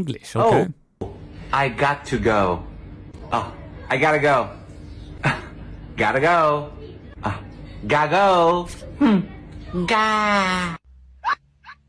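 A young woman speaks in a quirky, playful voice.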